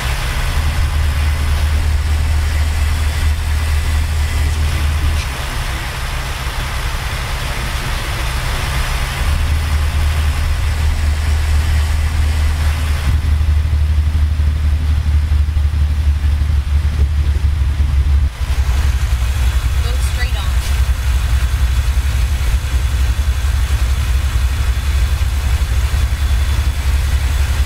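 A truck engine drones steadily with a low rumble.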